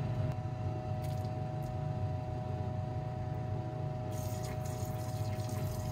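Liquid splashes as it is squirted from a wash bottle into a glass beaker.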